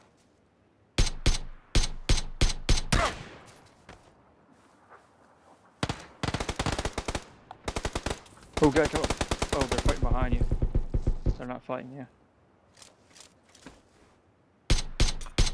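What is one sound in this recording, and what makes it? A rifle fires several sharp single shots.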